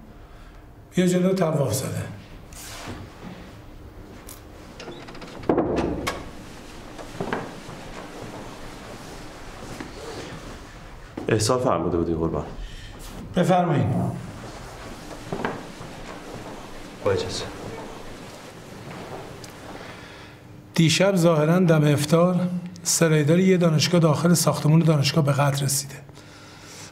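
An older man speaks calmly and firmly nearby.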